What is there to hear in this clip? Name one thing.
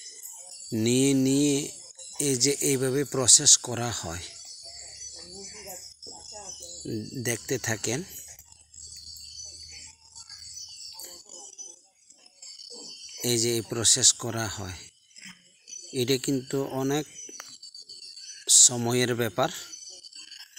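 A machete chops into a log with sharp, repeated blows.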